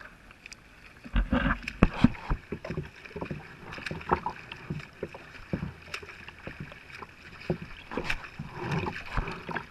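A swimmer's arms splash as they stroke through the water.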